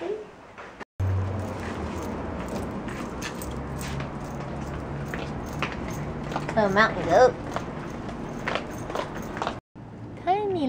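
A small dog's paws patter down stone steps.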